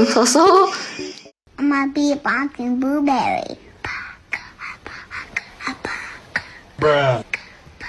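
A young woman speaks and laughs with animation close to a microphone.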